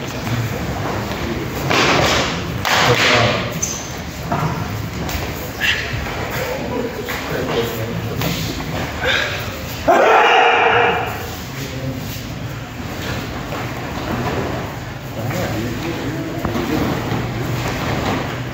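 Stiff uniforms snap with sharp kicks and punches.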